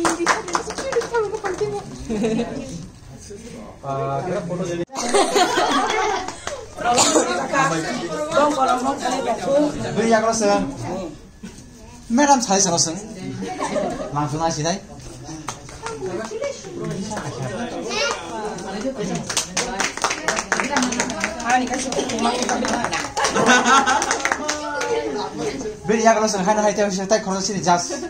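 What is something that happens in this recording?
Several men and women talk and laugh nearby.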